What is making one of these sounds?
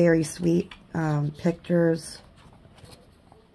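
Paper pages rustle as a book's page is turned.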